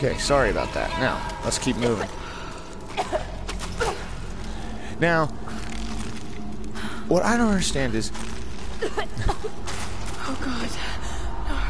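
Footsteps crunch over loose debris.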